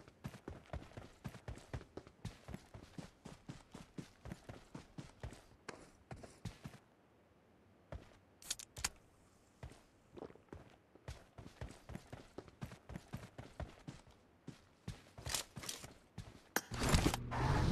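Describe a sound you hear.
Footsteps thud quickly on grass and dirt.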